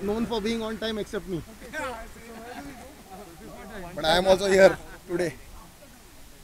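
A man talks close by into a microphone.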